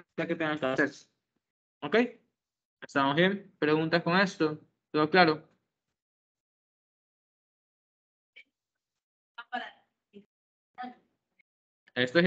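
A young man speaks calmly over an online call, in short bursts with pauses.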